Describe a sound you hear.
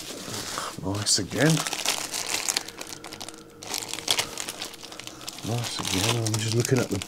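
A plastic bag crackles as it is handled.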